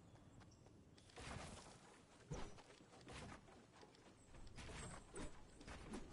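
Wooden walls are built with sharp, rapid clattering thumps.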